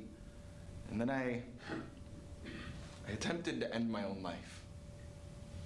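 A young man speaks calmly and clearly, heard close.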